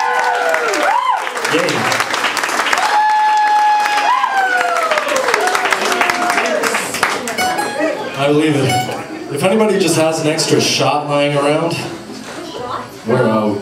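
A woman sings into a microphone with a live band.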